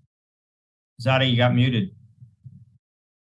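An elderly man speaks over an online call.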